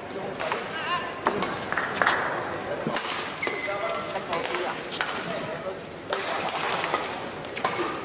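Shuttlecocks are struck with sharp clicks of rackets in a large echoing hall.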